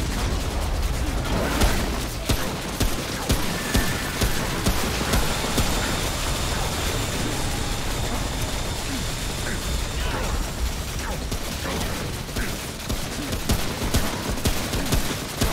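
Gunshots fire in quick succession.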